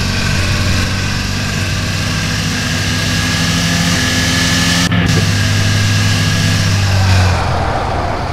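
A car engine runs at high revs.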